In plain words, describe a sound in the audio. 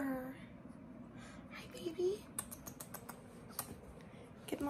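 A puppy licks and snuffles at a hand.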